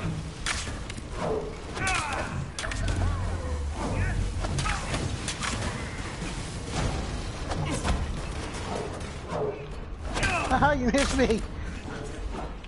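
Gunshots and blasts crack and boom repeatedly.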